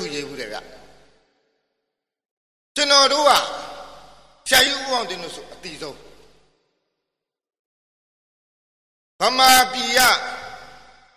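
A man speaks loudly with animation, his voice echoing.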